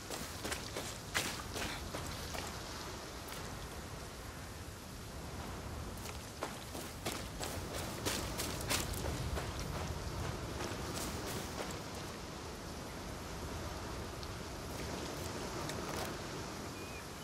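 Footsteps crunch and rustle through grass and over rough ground.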